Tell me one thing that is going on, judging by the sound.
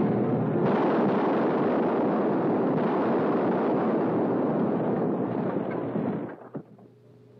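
An explosion roars and rumbles loudly.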